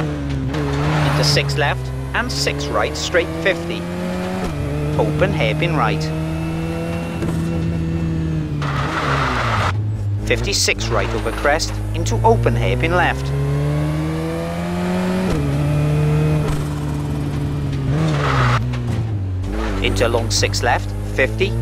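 A rally car engine revs high and shifts gears.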